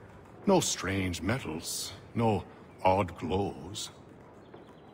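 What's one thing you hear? A man speaks in a calm, low voice close by.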